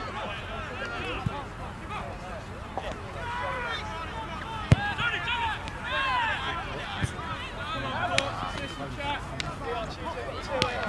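Children shout and call out across an open field outdoors.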